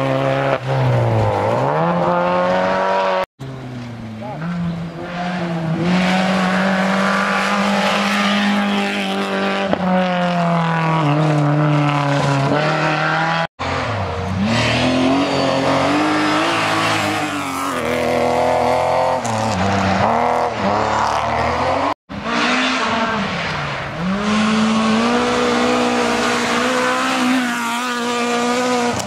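Rally car engines roar loudly and rev up and down as the cars race past.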